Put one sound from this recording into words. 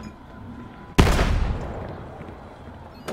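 A grenade explodes with a loud boom that slowly fades.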